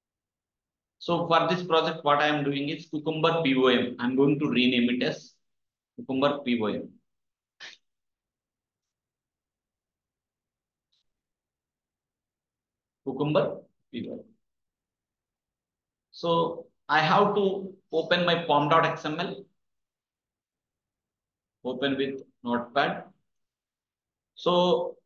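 A young man speaks calmly into a close microphone, in bursts with pauses.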